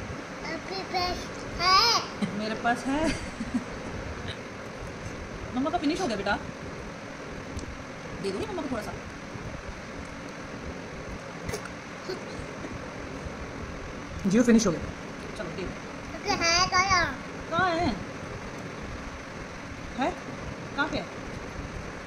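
A toddler girl babbles and chatters in short bursts close by.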